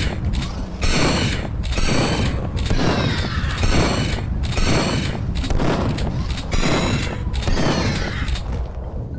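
A pistol fires shot after shot at a steady pace.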